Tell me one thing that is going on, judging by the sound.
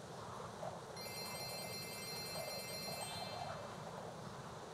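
Bright little chimes ring in quick succession.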